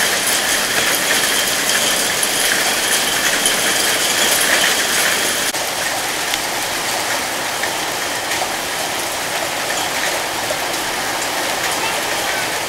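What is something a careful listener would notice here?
Hail pelts down on grass and puddles with a dense, steady hiss and patter.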